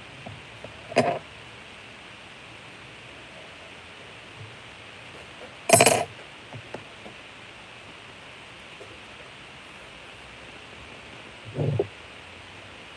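A few sharp knocks sound as something is handled nearby.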